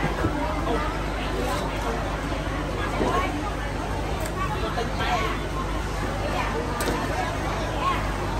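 Water splashes in a basin.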